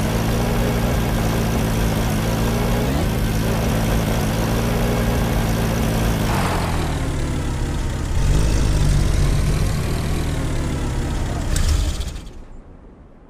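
A jeep engine rumbles steadily as it drives.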